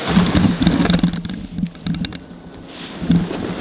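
A plastic sled scrapes and hisses over snow.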